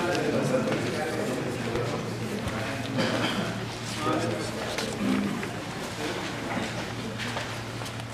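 Paper rustles as a man handles sheets close by.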